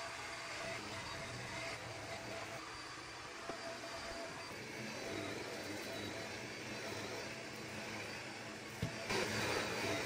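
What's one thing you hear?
A vacuum cleaner runs with a steady roar.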